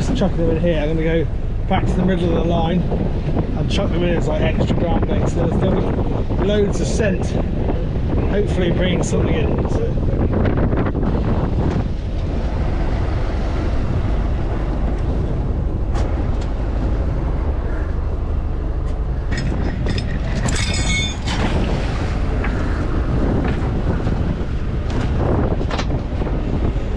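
Wind buffets the microphone outdoors.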